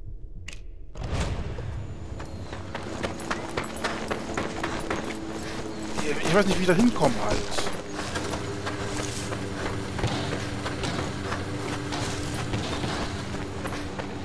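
Footsteps crunch quickly over gravel and dry ground.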